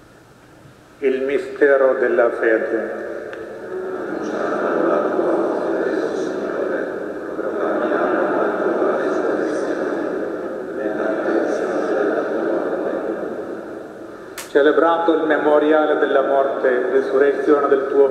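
Men chant together, echoing in a large hall.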